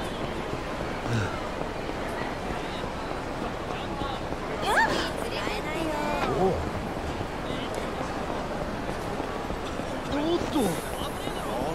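A crowd of men and women chatters in a busy street.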